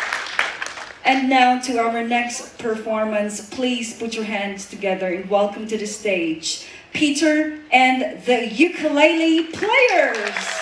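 A woman speaks into a microphone in a large hall, heard through loudspeakers.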